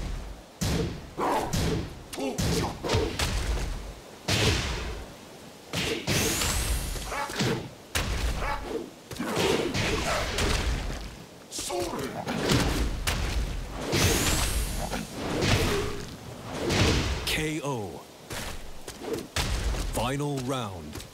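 Heavy blows land with sharp thuds and cracks in quick bursts.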